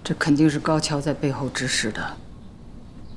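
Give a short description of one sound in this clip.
An elderly woman speaks sternly, close by.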